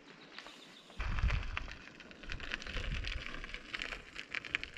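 Bicycle tyres roll along an asphalt road.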